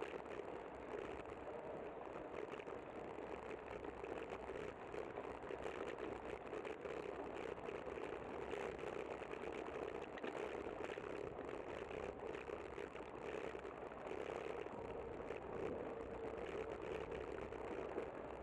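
Bicycle tyres roll over a smooth path.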